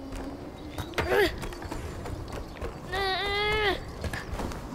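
A large creature lets out short, high, whining cries.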